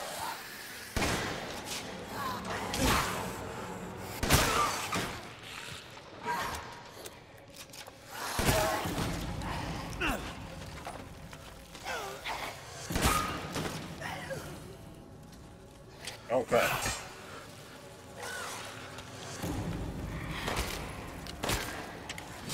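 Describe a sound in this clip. A shotgun fires loud, echoing blasts again and again.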